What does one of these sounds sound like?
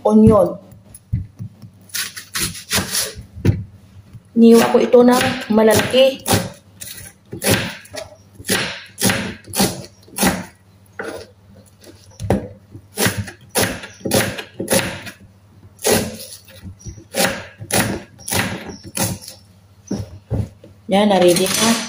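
A knife taps sharply on a wooden board as an onion is sliced.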